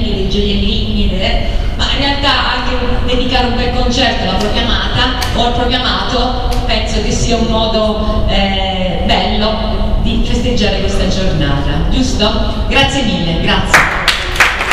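A woman sings through a microphone in an echoing hall.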